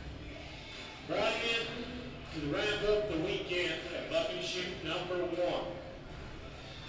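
A man speaks with animation over a loudspeaker.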